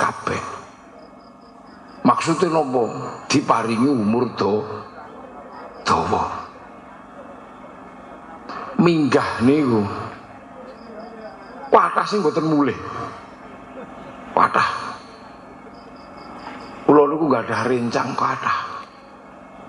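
A man speaks with animation into a microphone, in bursts with pauses, heard through a loudspeaker in a reverberant space.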